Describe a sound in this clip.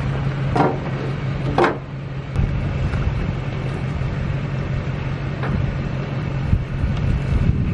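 Metal clanks and rattles as a dirt bike is pushed onto a trailer.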